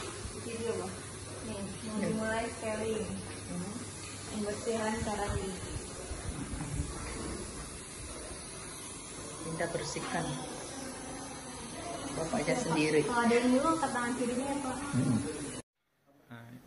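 A young woman talks calmly close by, muffled by a face mask.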